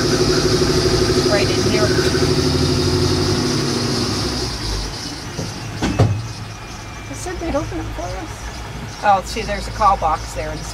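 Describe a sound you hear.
A vehicle engine hums and rumbles loudly, then settles lower.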